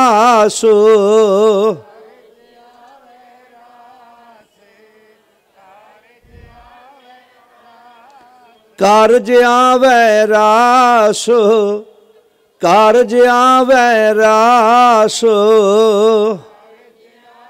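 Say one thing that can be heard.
A man sings loudly through a microphone with a wavering voice.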